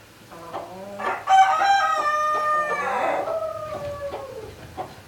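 A chicken lets out a loud, long squawking call.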